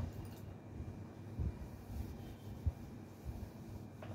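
A cloth rubs and squeaks across a whiteboard.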